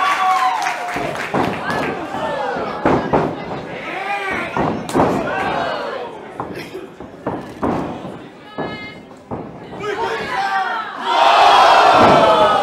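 A crowd of men and women shouts and cheers.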